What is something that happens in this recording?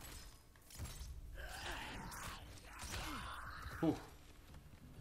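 A blade strikes and slashes with heavy impacts.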